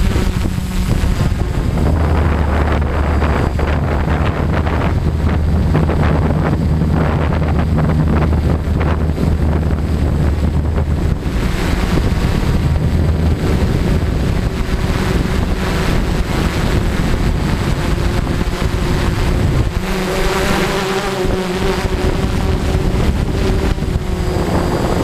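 A drone's propellers whir steadily overhead.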